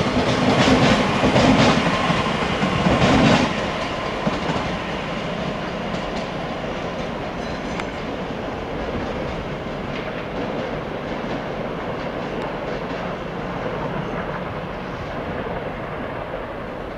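A train rumbles past over the tracks, loud at first and then quieter.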